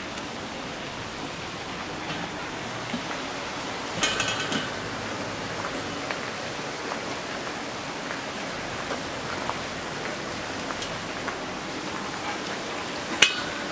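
Footsteps tread slowly on a stone path outdoors.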